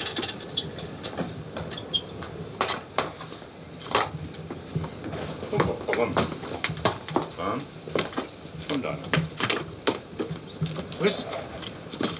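Metal clanks and taps around a forge.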